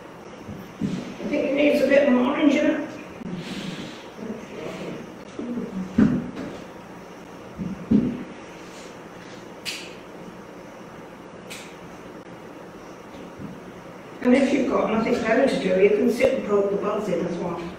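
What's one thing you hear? An older woman speaks calmly, close by.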